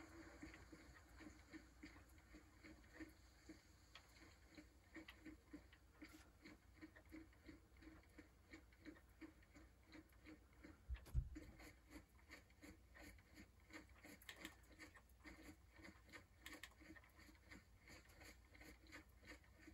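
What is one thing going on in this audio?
Footsteps tread steadily over grass and gravel.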